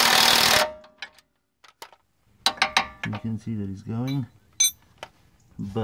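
Metal tools clink against each other.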